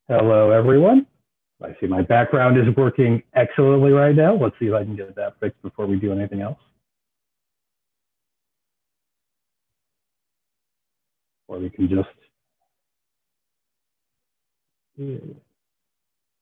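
A middle-aged man speaks calmly through an online call, with pauses.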